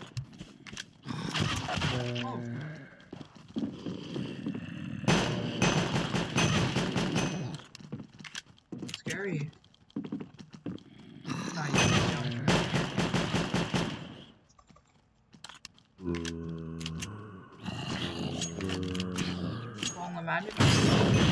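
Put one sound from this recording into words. Zombies groan.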